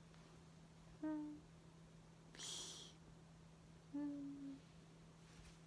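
A young woman makes short playful vocal sounds close to a microphone.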